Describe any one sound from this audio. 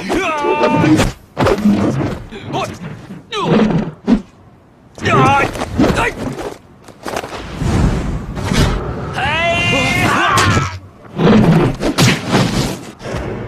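Men shout and yell fiercely in a fight.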